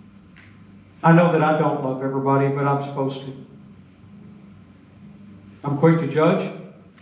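An elderly man speaks calmly through a microphone in a large echoing hall.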